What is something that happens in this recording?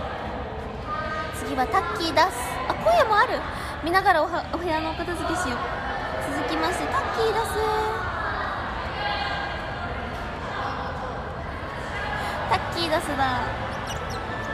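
A young woman talks close to a phone microphone with animation.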